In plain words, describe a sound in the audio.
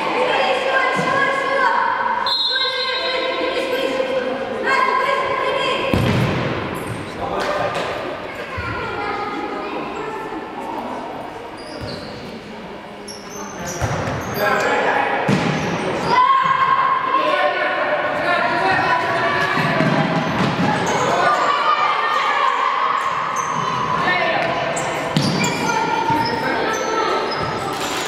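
A futsal ball is kicked hard on an indoor court.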